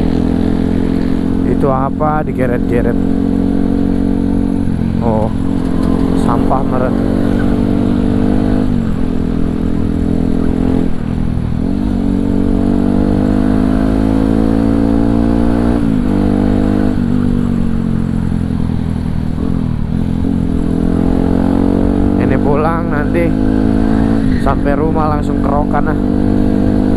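A motorcycle engine drones close by, rising and falling in pitch as the gears change.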